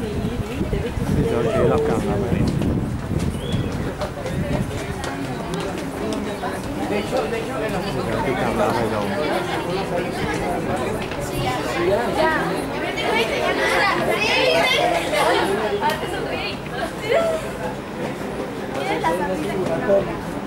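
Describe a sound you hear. Wind rustles the leaves of a tree outdoors.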